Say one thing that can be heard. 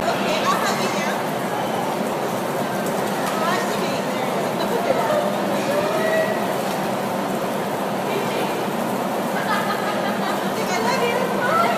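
Penguins squawk and chirp nearby.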